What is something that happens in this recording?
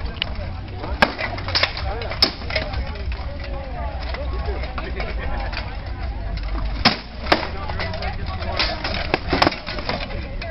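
Swords strike shields and armour with sharp metallic clanks.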